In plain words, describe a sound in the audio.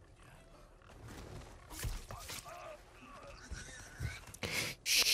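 A man grunts with strain.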